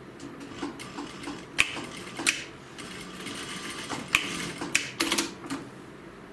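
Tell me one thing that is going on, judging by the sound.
A sewing machine stitches in quick bursts.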